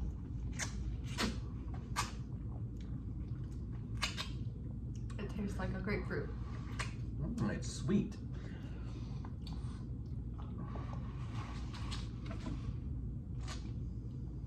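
A man slurps and chews juicy fruit.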